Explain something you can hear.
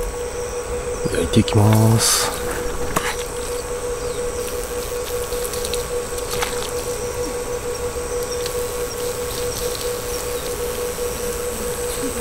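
A spoon scrapes against a metal bowl.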